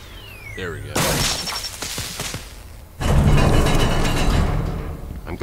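A loud blast booms and debris rumbles.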